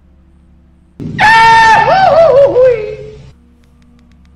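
A young woman lets out a loud, drawn-out shriek into a microphone that falls away.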